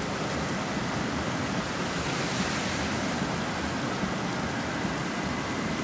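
A car drives past through water on the road.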